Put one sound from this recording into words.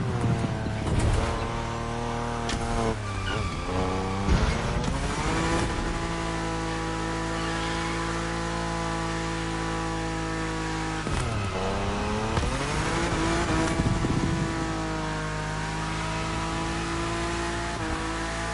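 A racing car engine roars loudly, its pitch rising and falling with gear shifts.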